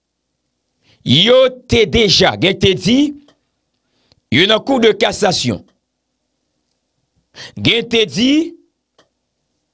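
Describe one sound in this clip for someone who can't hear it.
A young man speaks with animation, close to a microphone, in short bursts with pauses.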